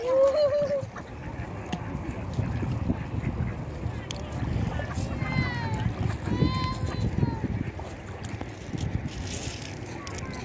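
Small waves lap against a stony shore.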